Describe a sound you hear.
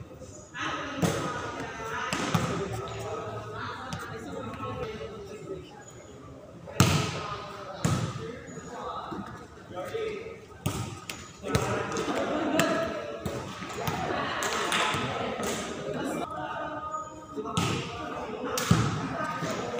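A volleyball is hit with sharp slaps, echoing under a large roof.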